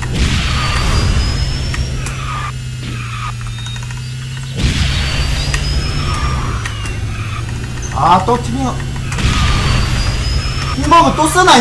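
Racing game engines hum and whoosh steadily.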